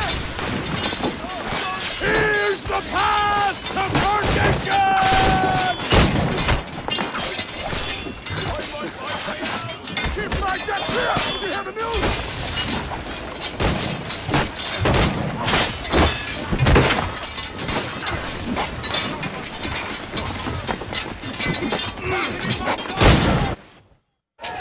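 Swords clash and clang in a fierce fight.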